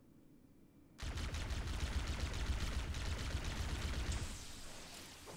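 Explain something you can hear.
A plasma gun fires a rapid, loud stream of shots.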